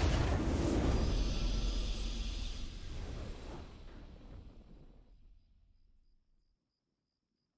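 A triumphant game fanfare plays loudly and fades away.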